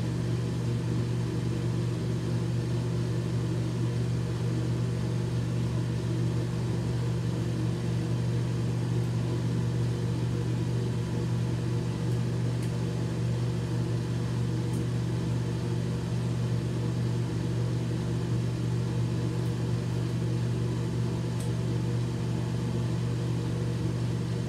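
Dental floss squeaks and snaps faintly between teeth.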